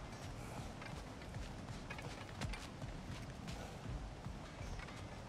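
Heavy footsteps thud on stone steps.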